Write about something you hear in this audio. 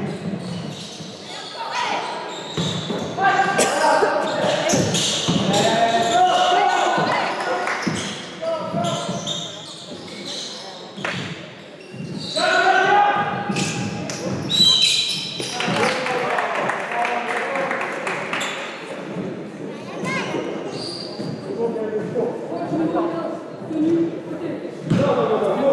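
Young men shout to each other across a large echoing hall.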